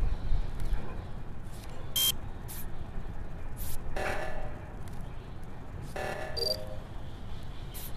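A card swipes through a reader with beeps.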